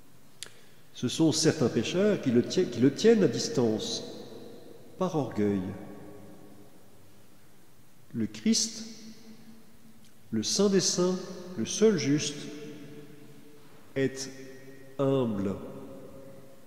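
A man chants slowly through a microphone in a large echoing hall.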